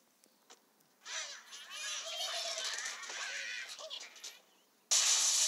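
A bird squawks as it flies through the air.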